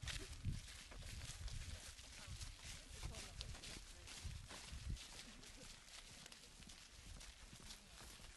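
A group of people walk along a pavement with shuffling footsteps.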